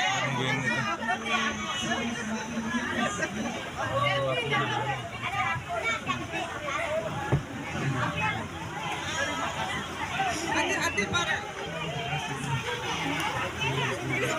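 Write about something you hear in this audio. A crowd of people chatters and calls out, heard through a playback.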